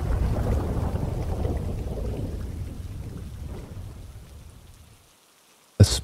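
A small fire crackles softly outdoors.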